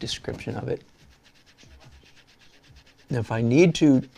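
A pen scratches lightly across paper.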